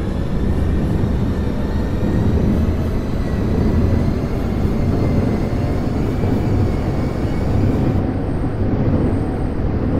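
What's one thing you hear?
A subway train rumbles steadily along the tracks.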